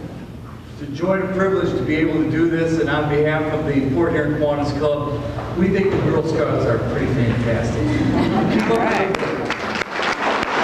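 An elderly man speaks to an audience.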